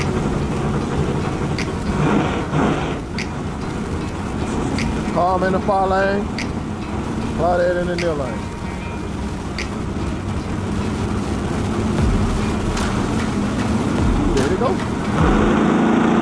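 Race car engines idle and rev loudly outdoors.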